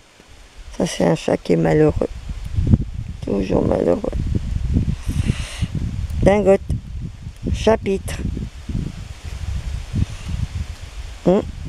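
Dry leaves rustle as a cat rolls on the ground.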